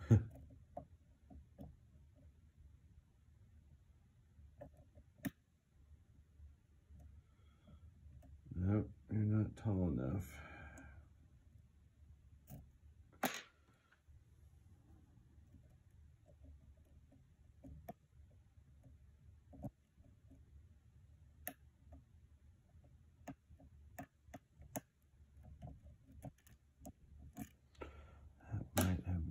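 Small metal picks click and scrape inside a lock.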